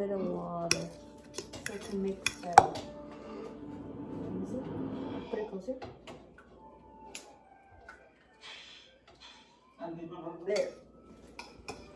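Tongs and utensils clink and tap.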